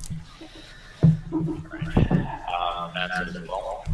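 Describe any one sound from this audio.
A young man talks casually over an online call.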